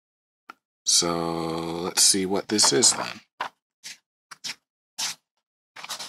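Paper pages rustle as a comic book is flipped through.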